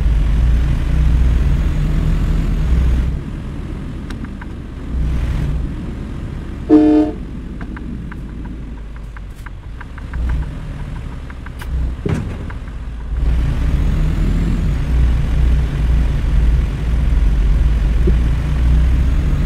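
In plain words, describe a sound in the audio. A truck engine rumbles low and steady, rising and falling with the throttle.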